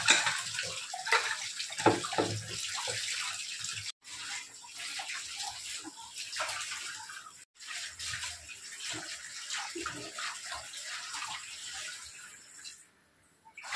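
Water runs from a tap and splashes.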